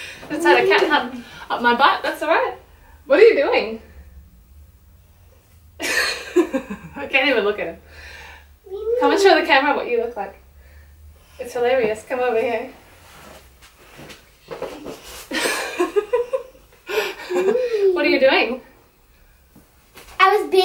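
A young woman speaks with animation close by, in short bursts.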